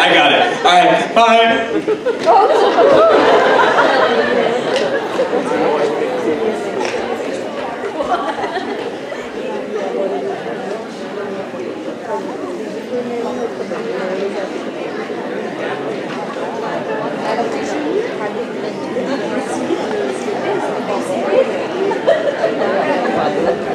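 A large audience chatters and murmurs in a big hall.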